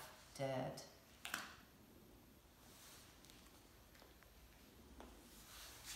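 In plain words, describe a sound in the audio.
Paper rustles as a hand handles it.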